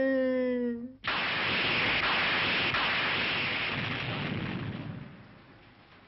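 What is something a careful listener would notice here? Thunder crashes loudly and rumbles away.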